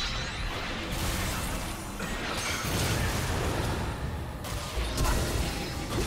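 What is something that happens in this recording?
Spell effects and combat sounds crackle and burst in a fast game fight.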